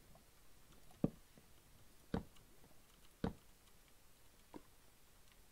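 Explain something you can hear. Footsteps thud slowly on stone.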